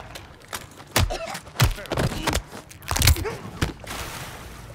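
Heavy blows land with dull thuds.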